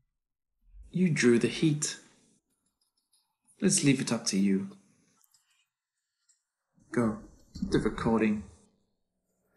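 A man speaks calmly and quietly, close by.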